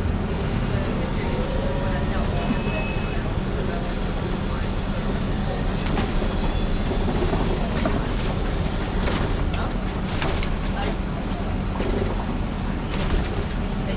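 Traffic and motorbikes rumble past on a busy street.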